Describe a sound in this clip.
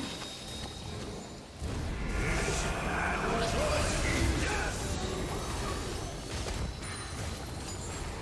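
Magic spells whoosh and crackle during a fast fight.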